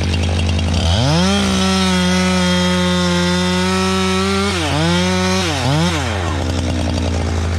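A chainsaw revs loudly, cutting into a tree trunk.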